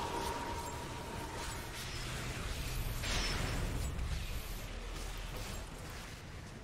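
Magic spells crackle and burst in a game battle.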